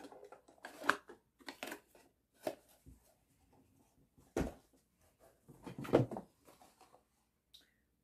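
Items rustle and knock in a cardboard box.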